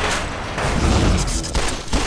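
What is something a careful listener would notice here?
An armoured figure stomps closer with heavy metallic steps.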